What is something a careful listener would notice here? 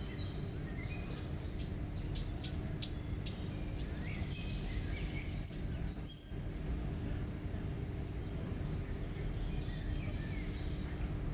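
Water laps softly at the bank.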